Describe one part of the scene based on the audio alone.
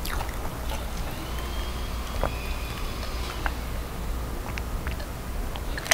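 A young woman gulps down a drink.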